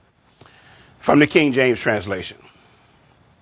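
A man speaks loudly into a microphone.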